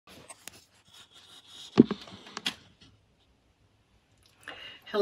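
An older woman speaks softly, close by, through a computer microphone.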